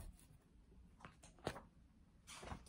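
A page of a book rustles as it turns.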